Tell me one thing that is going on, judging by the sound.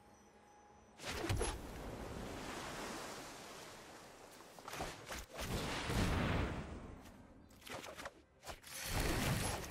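Digital game sound effects whoosh and chime as cards are played.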